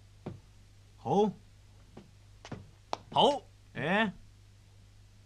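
A man answers briefly.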